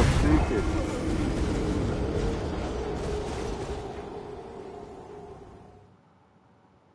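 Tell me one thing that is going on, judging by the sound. A large creature stomps with a deep rumble.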